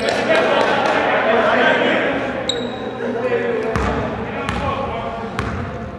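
A basketball bounces on a wooden gym floor with a hollow echo.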